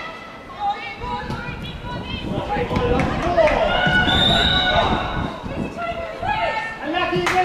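A crowd cheers and applauds outdoors.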